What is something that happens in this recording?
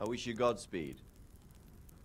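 A man speaks firmly at the start.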